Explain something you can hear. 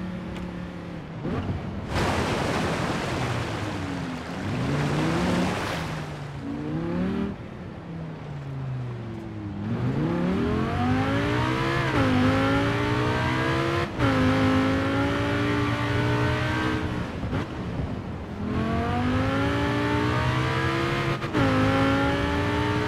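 A car engine revs up and down as it speeds along.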